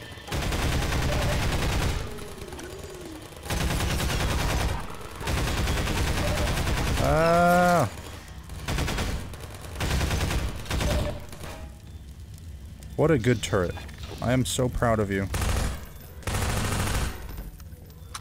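Gunfire bursts loudly in rapid bursts.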